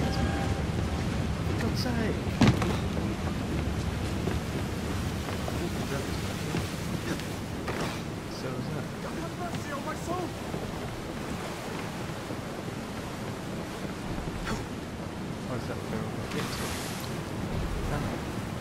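A man talks casually, close to a microphone.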